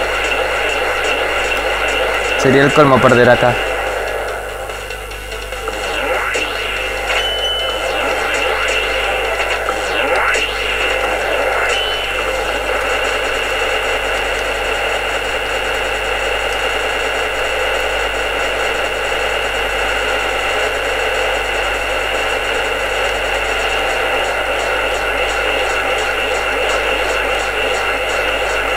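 Electronic game music plays steadily.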